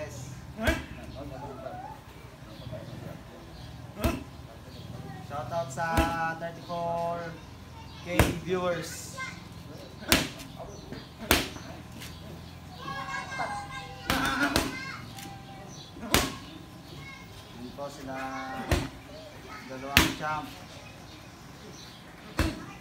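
Punches thud sharply against boxing pads.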